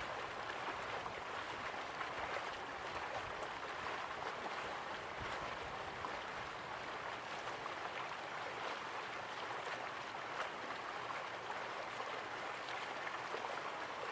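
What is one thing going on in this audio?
Waterfalls rush and splash steadily.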